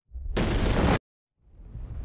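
A fiery blast roars loudly and cuts off abruptly.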